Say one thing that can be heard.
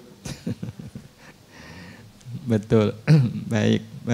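A middle-aged man laughs into a microphone.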